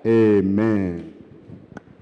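A congregation sings together loudly in a large hall.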